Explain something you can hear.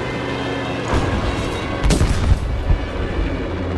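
An explosion booms on the ground below.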